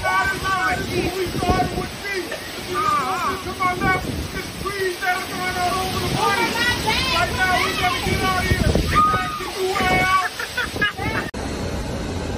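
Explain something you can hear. A man shouts outdoors.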